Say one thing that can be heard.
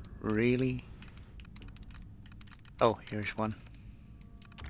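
A computer terminal gives short rising electronic beeps.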